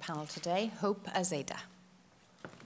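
A woman speaks warmly into a microphone in a large hall.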